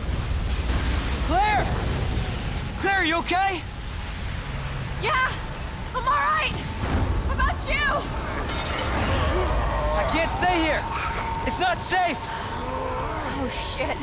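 A young man calls out from nearby.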